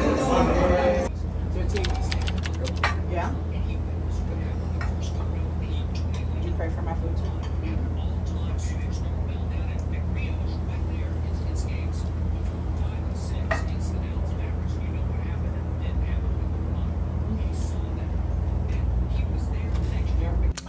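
Cutlery clinks against dishes.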